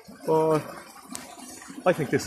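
A metal kettle lid clinks softly.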